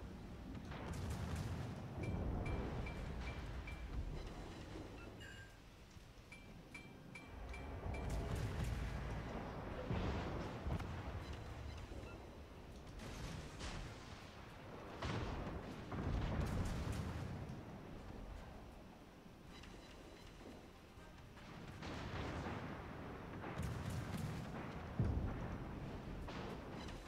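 Heavy naval guns fire in loud, deep booms again and again.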